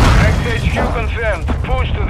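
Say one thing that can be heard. A heavy truck engine rumbles nearby.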